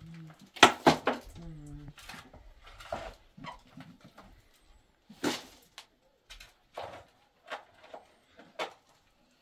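Clods of dirt thump into a metal wheelbarrow.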